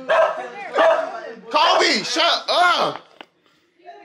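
A young man laughs loudly close by.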